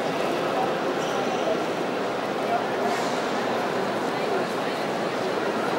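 A crowd of people murmurs and chatters all around in a large echoing hall.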